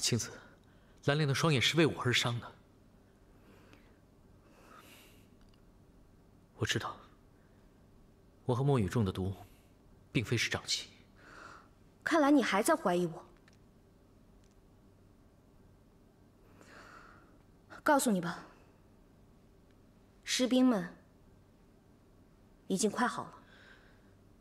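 A young woman speaks firmly, close by.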